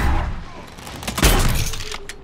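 A fiery blast bursts.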